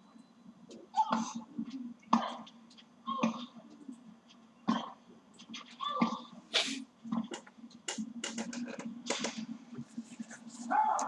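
A tennis ball is struck back and forth with sharp pops, heard through a television speaker.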